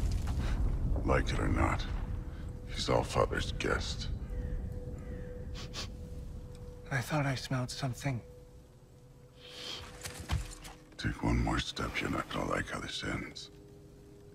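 A deep-voiced man speaks gruffly and threateningly, close by.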